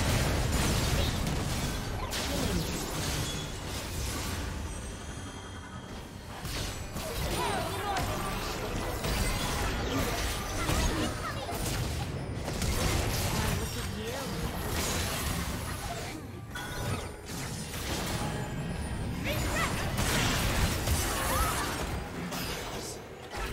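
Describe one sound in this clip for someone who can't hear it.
Game characters' attacks hit with sharp impacts.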